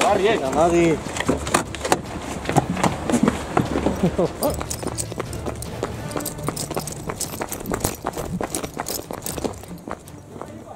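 Footsteps run quickly over pavement.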